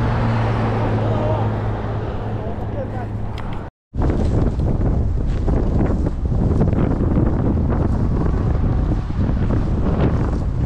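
Footsteps crunch and rustle through dry grass.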